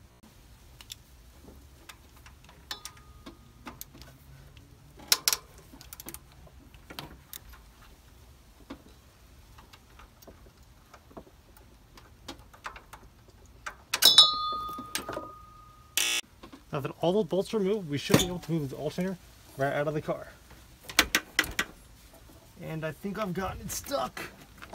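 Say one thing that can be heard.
Metal tools clink and knock against engine parts.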